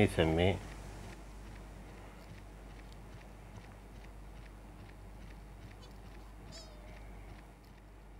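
A creature's feet patter quickly along a path.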